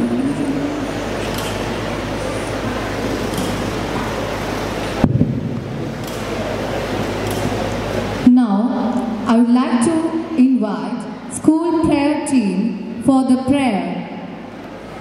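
A man chants into a microphone, heard through loudspeakers in a large open space.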